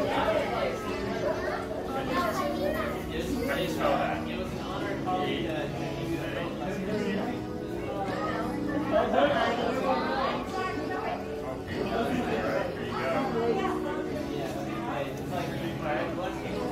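A crowd of children and adults chatters nearby.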